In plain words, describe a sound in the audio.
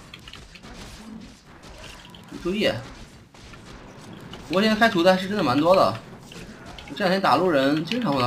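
Weapons clash and spells crackle in a game battle.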